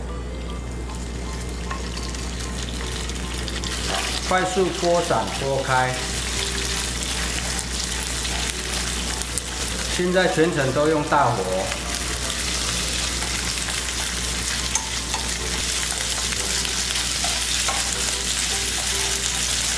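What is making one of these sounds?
Meat sizzles loudly in a hot pan.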